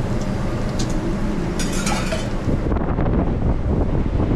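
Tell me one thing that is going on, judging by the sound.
Food sizzles on a hot griddle.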